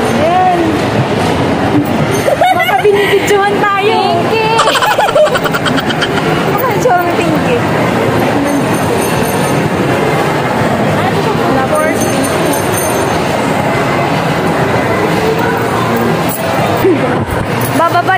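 Young women talk and laugh close by.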